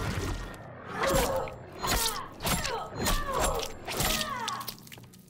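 Sharp spikes stab into flesh with repeated wet thuds.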